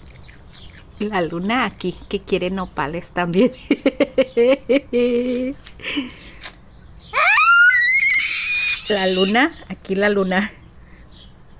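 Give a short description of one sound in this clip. A young girl talks cheerfully close by.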